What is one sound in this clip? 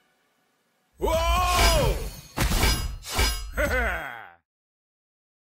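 Loud game sound effects crash and whoosh as creatures attack.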